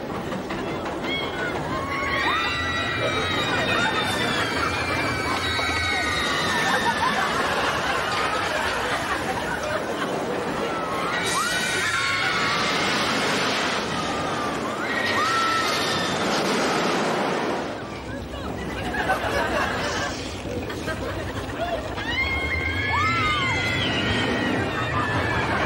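Several women scream loudly and shriek with laughter.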